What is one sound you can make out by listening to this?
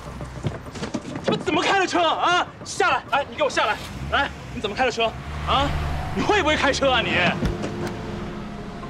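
A man speaks in distress, close by.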